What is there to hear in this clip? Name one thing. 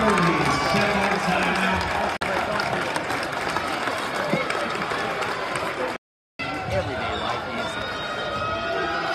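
A crowd cheers and chatters loudly in a large echoing hall.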